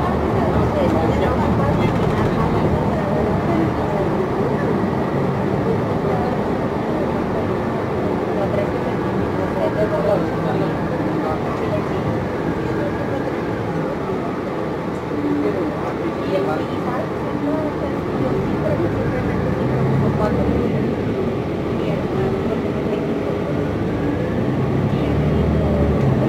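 A bus engine rumbles steadily from inside the moving bus.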